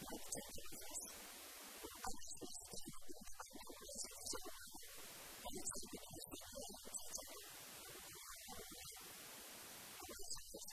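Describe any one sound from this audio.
A man speaks calmly into a close microphone, with pauses.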